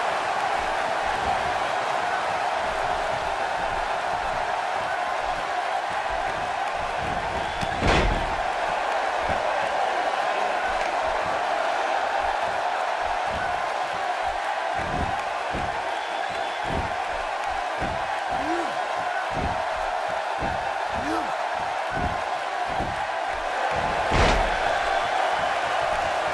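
A large arena crowd roars and cheers.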